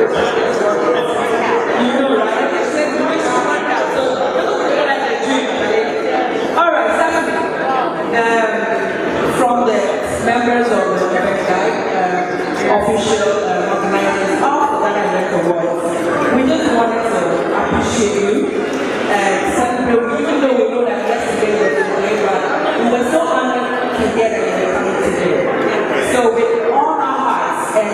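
Another woman answers into a microphone over loudspeakers.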